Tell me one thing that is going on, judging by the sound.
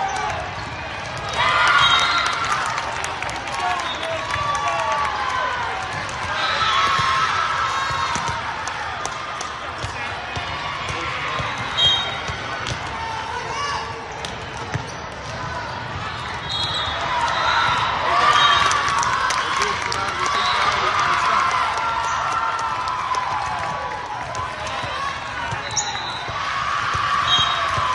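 Girls shout and cheer across a large echoing hall.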